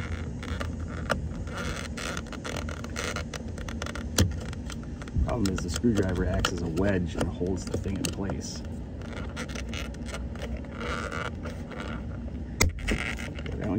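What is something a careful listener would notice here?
A metal tool clicks and scrapes against plastic.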